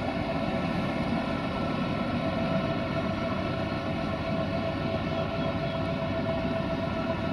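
A diesel locomotive engine hums steadily as it passes close by.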